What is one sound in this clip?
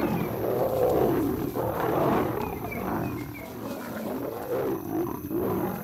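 Lions growl and snarl close by.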